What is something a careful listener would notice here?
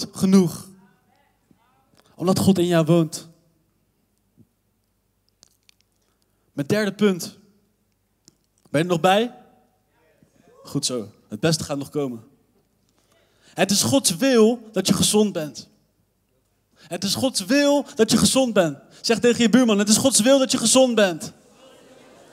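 A young man speaks with animation into a microphone, heard through loudspeakers in a large echoing hall.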